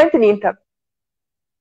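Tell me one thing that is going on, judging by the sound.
A woman speaks briefly and warmly, close to a microphone.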